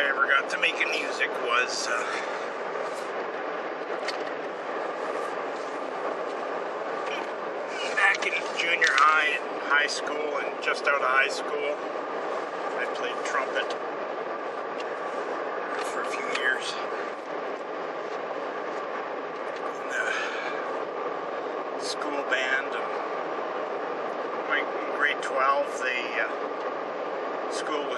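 A car engine and road noise hum steadily.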